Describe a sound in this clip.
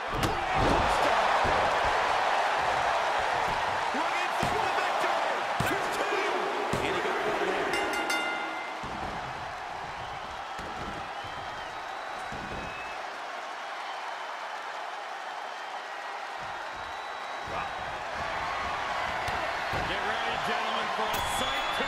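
Bodies thud heavily on a wrestling ring.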